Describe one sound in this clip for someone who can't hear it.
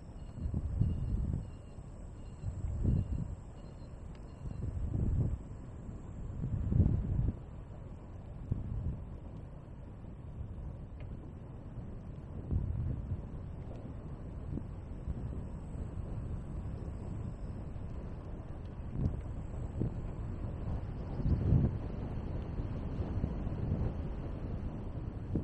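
Wind rumbles in gusts against the microphone.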